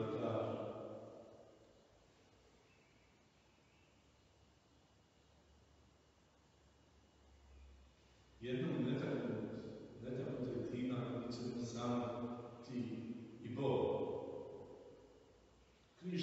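An elderly man reads aloud calmly in a reverberant hall.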